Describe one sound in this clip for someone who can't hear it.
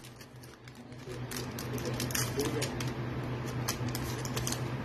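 A foil wrapper crinkles as it is handled and torn open.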